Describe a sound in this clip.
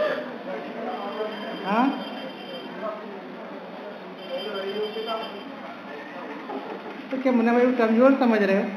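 A man sings a chant through a microphone, his voice swelling louder toward the end.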